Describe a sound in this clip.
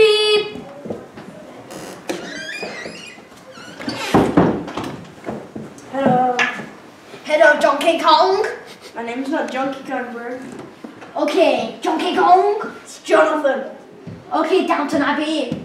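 Young boys talk with one another.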